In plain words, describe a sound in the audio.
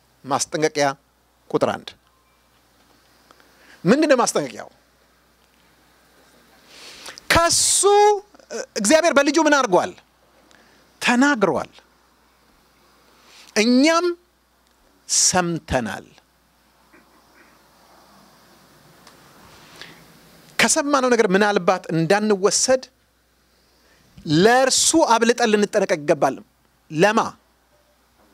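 A middle-aged man preaches with animation into a microphone, in bursts with pauses.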